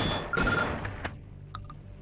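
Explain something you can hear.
A shotgun is reloaded with a metallic click.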